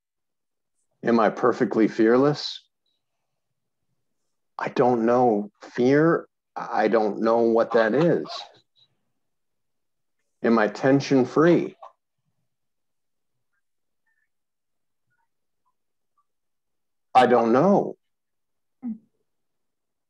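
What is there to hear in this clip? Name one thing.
A middle-aged man speaks calmly in short bursts over a microphone, with pauses between them.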